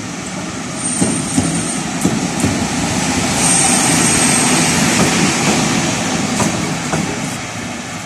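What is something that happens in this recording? Wheels click over rail joints.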